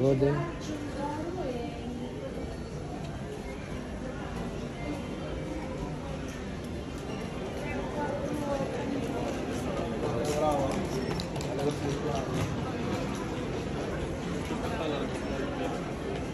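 Men and women murmur and chatter faintly in the background.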